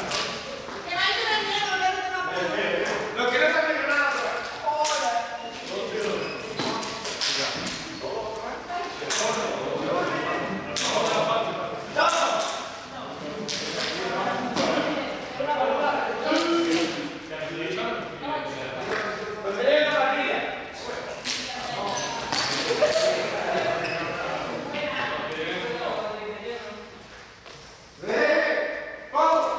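Sneakers squeak and thud on a hard floor.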